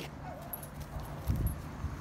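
A dog pants nearby.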